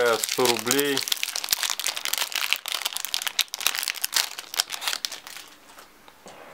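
Plastic wrapping crinkles and rustles as it is pulled off.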